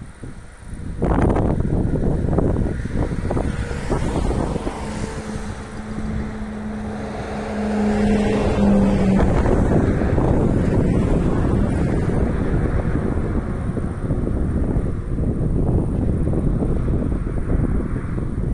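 Wind gusts loudly across the microphone outdoors.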